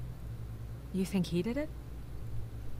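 A woman answers in a strained, hesitant voice.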